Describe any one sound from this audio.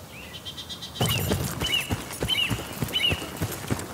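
Footsteps thud quickly through grass as someone runs.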